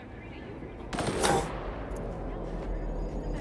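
A rifle fires a single loud shot that echoes.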